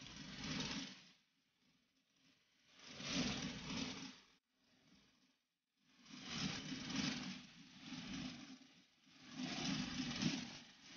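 A mixer whisks batter in a metal bowl, rising and falling in bursts.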